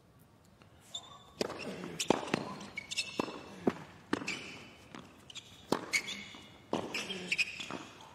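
A tennis ball is struck hard with a racket, back and forth in a rally.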